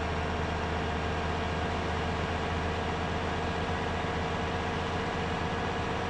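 A bus engine drones steadily at high speed.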